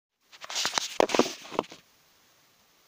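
Clothing rustles and rubs close against the microphone.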